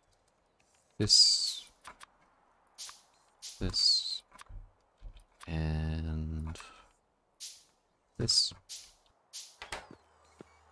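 Short game interface clicks sound as items are picked from a menu.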